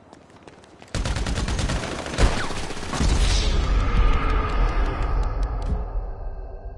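Gunshots ring out in loud bursts.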